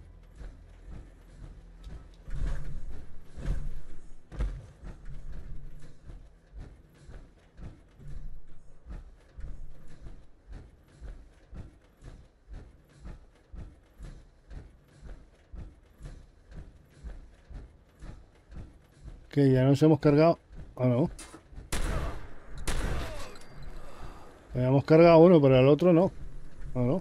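Heavy metallic footsteps thud steadily.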